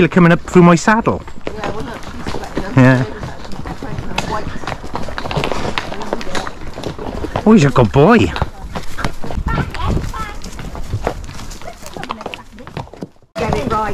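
Horses' hooves clop steadily on a stony path.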